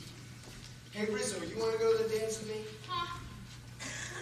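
A young woman sings loudly from a stage.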